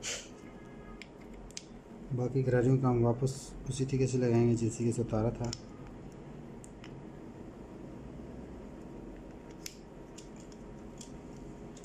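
Small plastic gears click and tap as they are handled.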